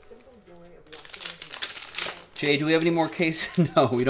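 A foil wrapper crinkles loudly.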